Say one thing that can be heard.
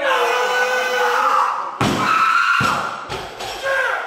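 A barbell drops and thuds on the floor.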